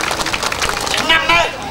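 A man speaks loudly to a crowd.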